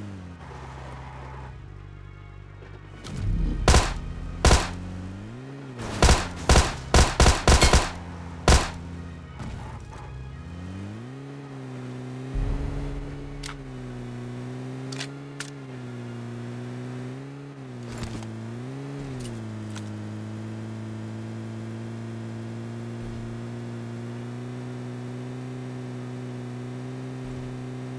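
A vehicle engine hums steadily, rising and falling in pitch as it drives.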